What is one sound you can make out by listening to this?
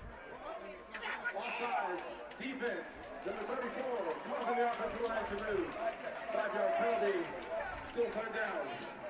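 A man announces a call through a loudspeaker, echoing across an open stadium.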